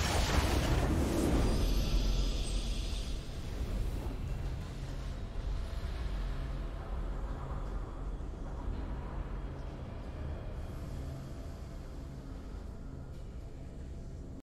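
A triumphant game fanfare swells and then slowly fades.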